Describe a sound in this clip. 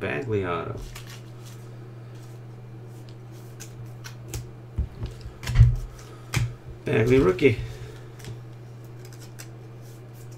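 Trading cards slide and click against each other in a hand.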